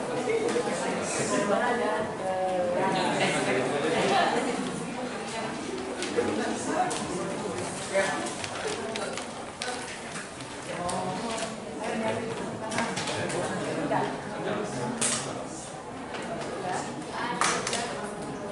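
Teenage boys and girls chatter around the room.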